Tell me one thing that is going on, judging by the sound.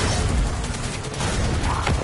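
An energy weapon fires with a sharp zap.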